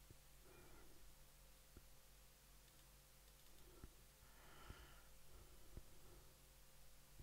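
A man speaks quietly into a headset microphone.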